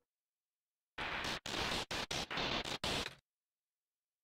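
Rapid harsh blips chatter in short bursts.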